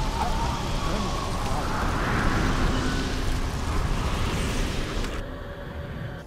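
Loud battle effects crash and rumble in a video game.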